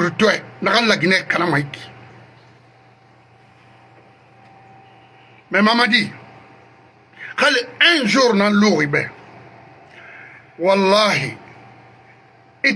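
A man speaks emphatically into a close microphone, in short bursts with pauses.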